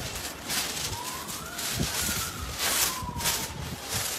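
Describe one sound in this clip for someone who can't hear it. A paper kite rustles and flaps in the wind.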